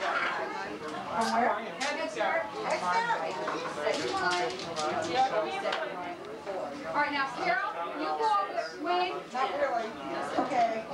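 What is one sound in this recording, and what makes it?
An elderly woman talks with animation close by.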